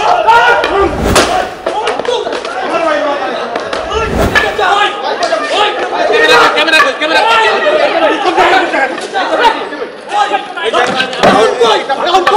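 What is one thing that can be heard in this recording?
Several young men shout angrily outdoors.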